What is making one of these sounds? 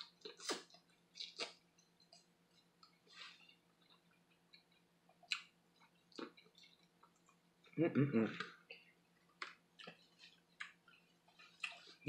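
Crab shells crack and crunch in a woman's hands.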